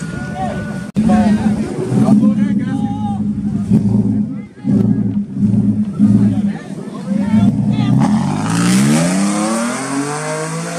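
A truck engine rumbles deeply and revs up.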